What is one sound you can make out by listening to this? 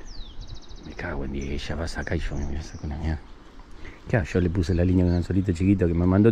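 A man talks close up.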